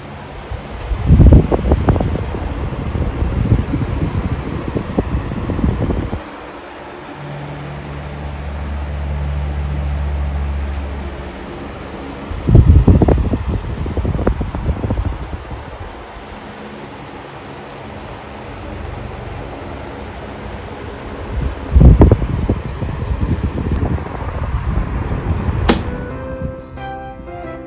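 An electric fan whirs, its air rumbling and buffeting in gusts close by.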